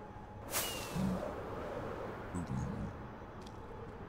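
A zombie-like creature grunts.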